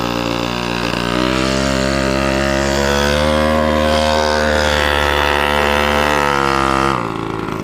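A small engine runs with a steady buzzing drone that rises slightly in pitch, then drops.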